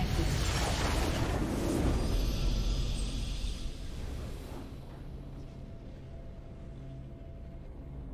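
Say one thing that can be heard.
A triumphant video game victory tune plays.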